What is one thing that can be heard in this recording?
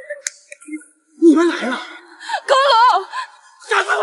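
A middle-aged woman cries out in alarm.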